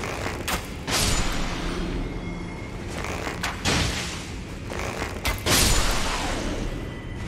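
A sword swings and strikes with loud impacts.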